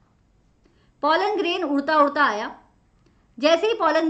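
A young woman speaks calmly and close into a microphone.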